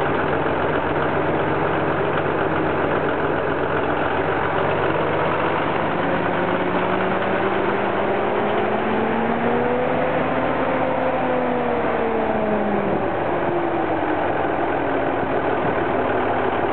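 A large diesel engine idles loudly and steadily, rising briefly in pitch and settling again.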